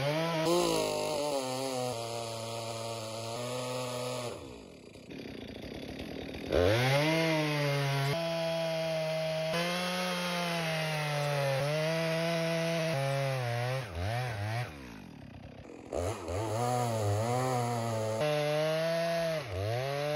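A chainsaw engine roars and revs up and down as it cuts through a log.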